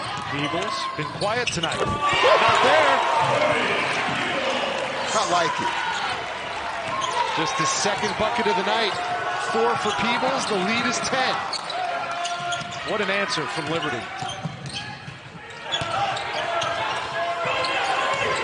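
A crowd cheers and claps in a large echoing arena.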